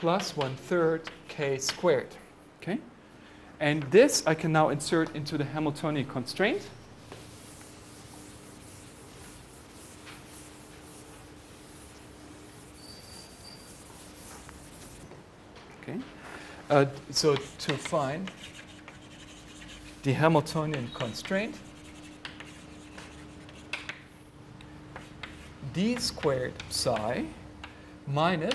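A middle-aged man speaks calmly, as if lecturing.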